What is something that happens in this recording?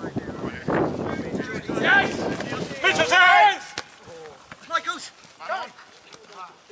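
Men shout and call to each other outdoors across an open field.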